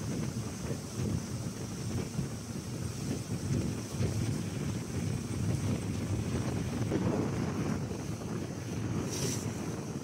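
Wind buffets outdoors on open water.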